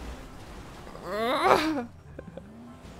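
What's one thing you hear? A young man laughs close to a microphone.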